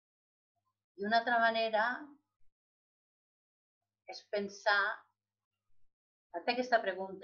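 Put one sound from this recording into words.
An elderly woman speaks calmly through a webcam microphone, in short phrases with pauses.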